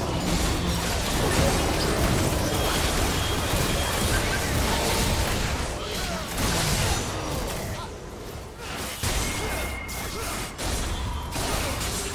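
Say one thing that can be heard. Spell effects whoosh and blast during a fight.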